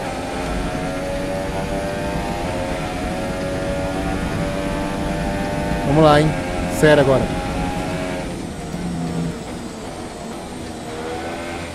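A racing car engine whines loudly at high revs.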